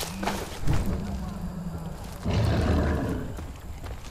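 A fire crackles close by.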